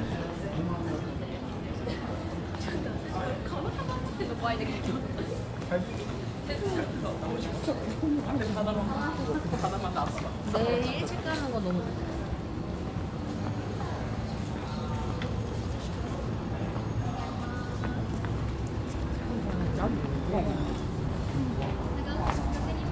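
Footsteps scuff on a paved street.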